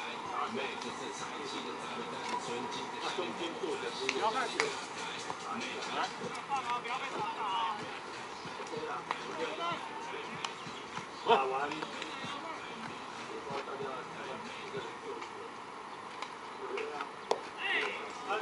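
Men's voices call out and chatter across an open field outdoors.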